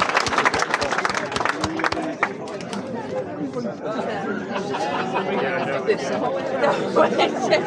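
A crowd of men and women chatter close by, outdoors.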